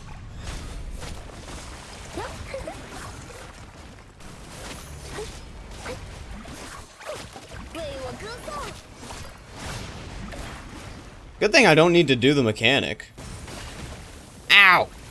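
Sharp hits and crackling blasts ring out in a fast fight.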